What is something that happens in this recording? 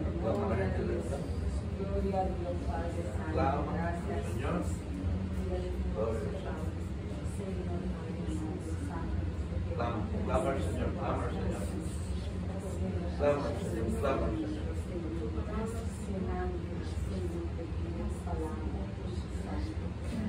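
Several women pray aloud together with fervour, close by in a room.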